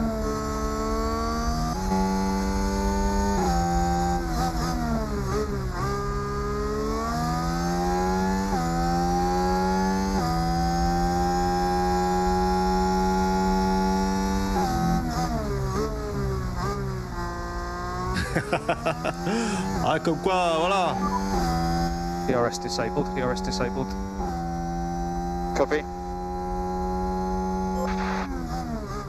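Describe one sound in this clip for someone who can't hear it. A racing car engine roars, rising in pitch and dropping with each gear change.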